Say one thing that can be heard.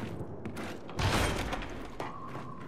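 Metal double doors burst open with a loud whoosh.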